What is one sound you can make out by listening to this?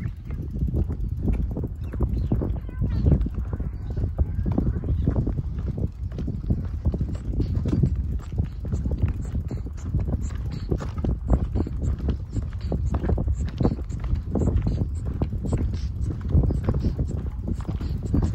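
Footsteps crunch steadily on a paved path.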